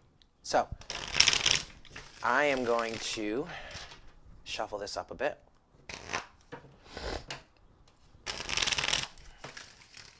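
Playing cards are shuffled with a rapid riffling flutter.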